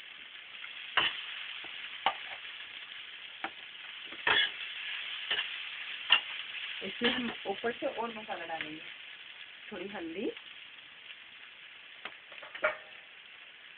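A metal spatula scrapes and clatters against a frying pan.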